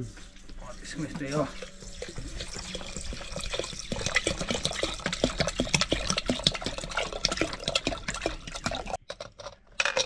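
Water pours from a bottle into a pot.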